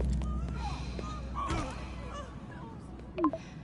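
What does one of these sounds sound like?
A young woman speaks quietly, close by.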